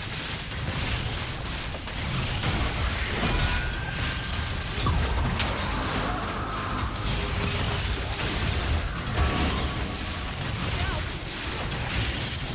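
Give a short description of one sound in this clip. Game characters' weapons clash and strike.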